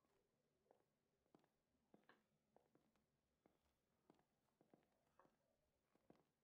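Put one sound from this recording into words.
Footsteps thud slowly on a creaking wooden floor.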